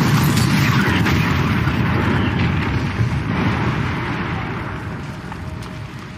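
A fiery explosion roars with a deep rumble that slowly fades.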